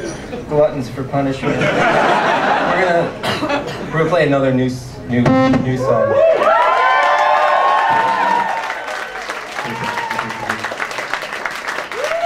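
An electric guitar plays loudly, with bending notes.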